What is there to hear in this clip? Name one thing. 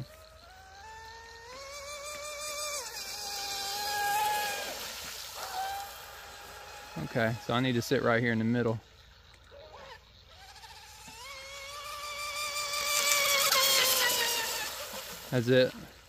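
A small motor whines at high pitch, rising and falling as it races across water.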